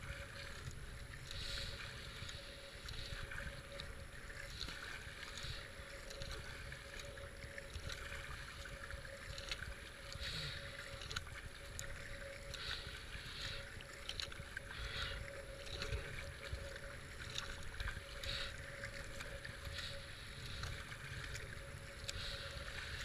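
River water rushes and splashes steadily around a kayak.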